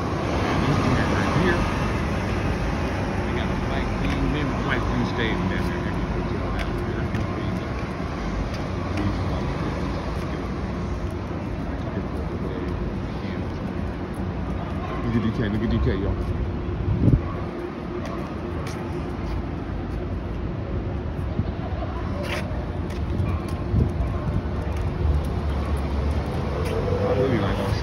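Traffic rumbles steadily along a city street outdoors.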